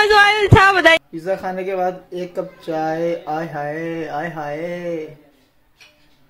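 A young man sings lazily close by.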